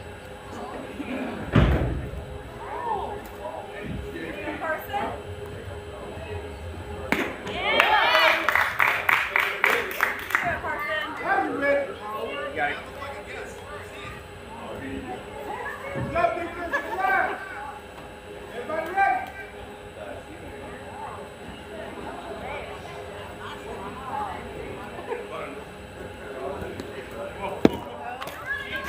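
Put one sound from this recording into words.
Young women shout and cheer outdoors.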